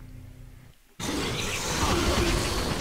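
A loud rushing noise bursts in and continues.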